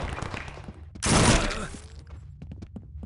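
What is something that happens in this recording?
A loud blast booms and rumbles away.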